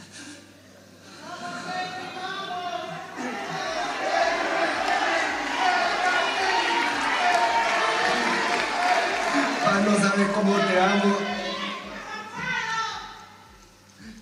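A man speaks haltingly through a microphone, his voice breaking with tears, in a reverberant hall.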